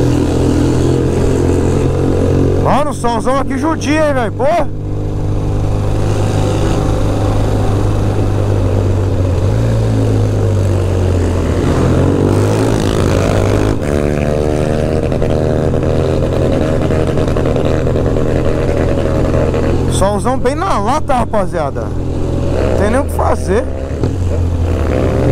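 A motorcycle engine hums steadily up close as the bike rides along.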